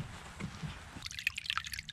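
A shallow stream trickles and splashes over stones.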